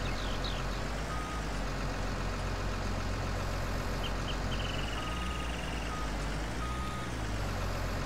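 Hydraulics whine as a grapple arm moves.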